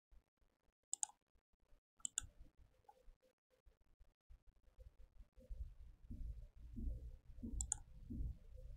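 Short soft clicks sound as a menu is moved through.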